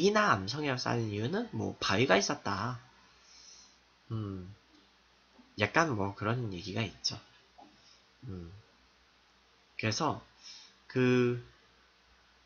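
A young man talks casually into a nearby microphone, in short bursts with pauses.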